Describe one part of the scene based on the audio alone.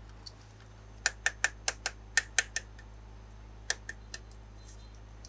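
Plastic clicks as a toy bottle is set down.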